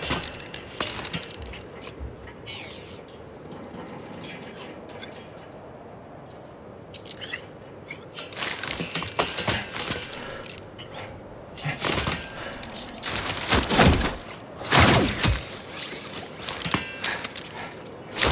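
Hands grip and rattle a metal grating while climbing.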